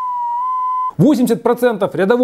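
A young man speaks with animation close by.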